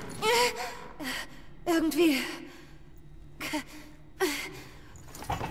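A young woman speaks in strained, breathless bursts close by.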